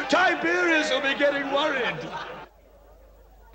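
A man speaks in a low, serious voice close by.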